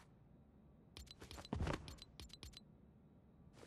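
Soft menu clicks tick in quick succession.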